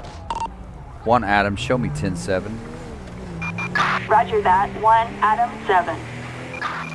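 A police siren wails.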